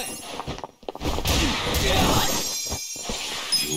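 Punches and kicks land with heavy thuds in a brawl.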